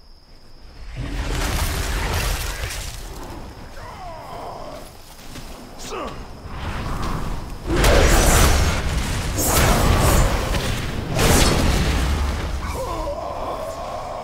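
Magic spells whoosh and burst loudly in a fight.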